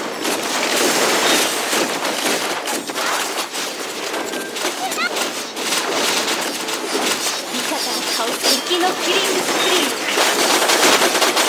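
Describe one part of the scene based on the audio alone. Magic spells crackle and burst amid a fast game battle.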